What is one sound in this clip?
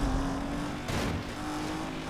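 A car smashes through a wooden barrier with a crash of debris.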